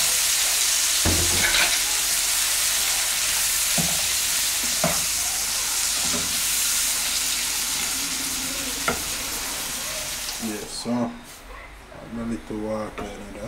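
A spatula scrapes and knocks against a metal pan.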